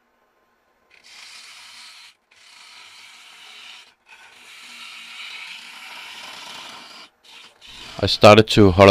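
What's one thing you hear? A gouge scrapes and shaves spinning wood in bursts.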